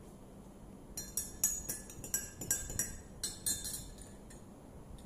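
A spoon clinks against a glass as it stirs.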